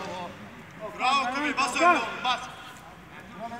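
A man close by shouts and calls out with animation.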